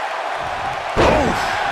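A body slams onto a wrestling ring mat with a heavy thud.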